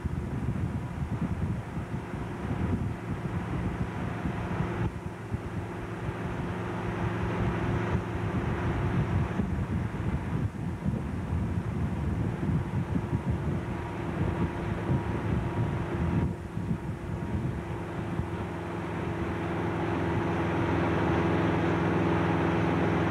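Water rushes and splashes in the boat's wake.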